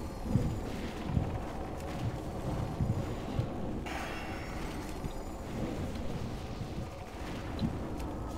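Spells and weapons clash and boom in a chaotic game battle.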